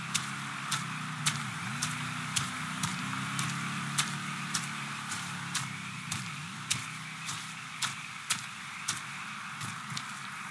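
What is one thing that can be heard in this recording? Footsteps thud quickly on a dirt path.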